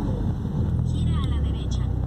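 A motorcycle passes nearby.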